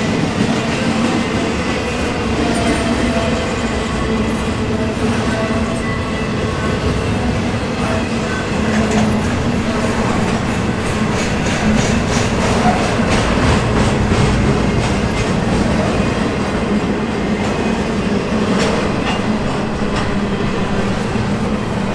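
A long freight train rumbles past close by, its wheels clattering rhythmically over the rails.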